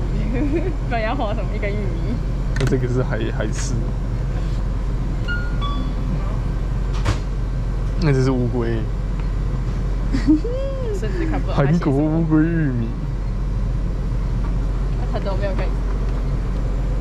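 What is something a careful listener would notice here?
A young woman talks nearby in a casual voice.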